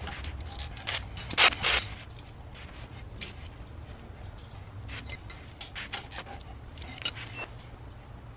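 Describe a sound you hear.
Metal tools clatter on a concrete floor.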